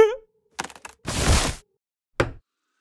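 A tree trunk crashes to the ground.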